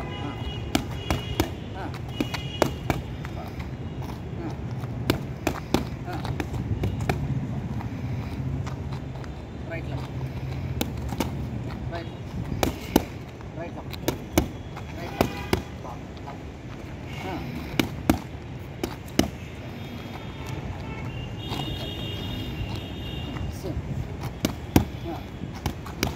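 Boxing gloves thump against padded mitts in quick bursts.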